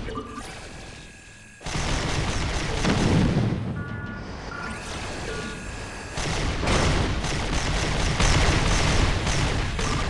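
Laser guns zap and fire rapidly.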